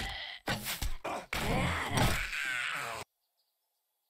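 A wooden club thuds heavily against a body.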